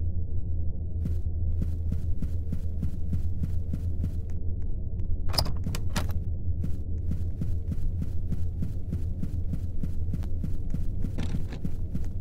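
Footsteps fall steadily on a carpeted floor.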